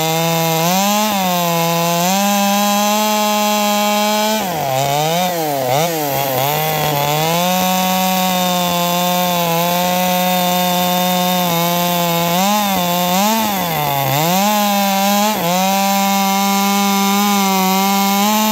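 A chainsaw engine runs loudly, revving up and down as it cuts through wood.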